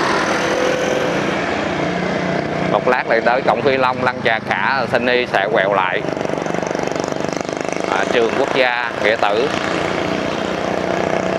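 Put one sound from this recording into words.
Other motorbikes pass close by.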